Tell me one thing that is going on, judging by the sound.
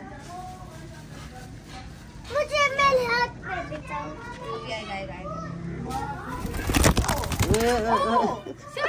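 A young child calls out excitedly nearby.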